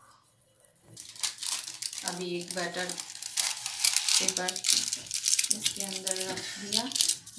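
Paper crinkles and rustles as it is pressed into a tin.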